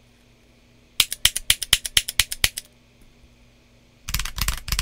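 Keyboard keys clack in quick, sharp taps.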